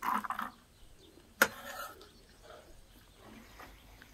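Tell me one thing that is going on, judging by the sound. A knife chops vegetables on a wooden board.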